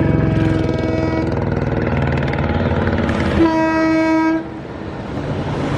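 A diesel locomotive engine rumbles steadily as a train approaches.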